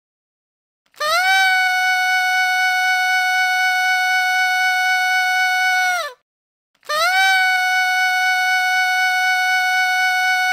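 A party horn blows a long, steady buzzing note, twice.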